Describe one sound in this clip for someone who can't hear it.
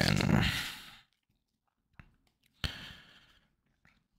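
Trading cards rustle as they are handled.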